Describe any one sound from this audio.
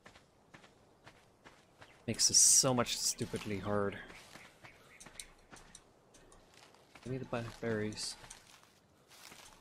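Leafy bushes rustle and snap as they are picked by hand.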